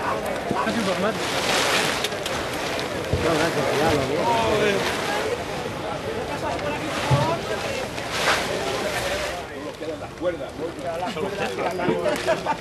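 A crowd of people talk in the background outdoors.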